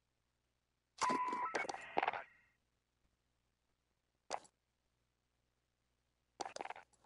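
Short electronic menu sounds chime and whoosh.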